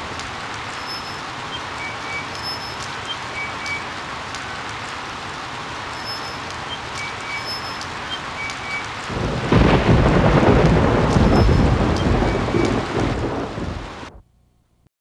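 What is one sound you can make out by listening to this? Heavy rain pours down and grows louder.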